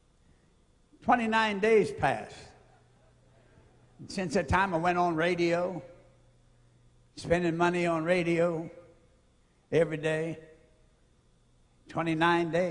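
An elderly man speaks slowly and forcefully through a microphone in a large echoing hall, pausing between phrases.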